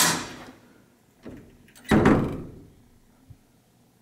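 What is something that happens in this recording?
A heavy door swings shut with a thud.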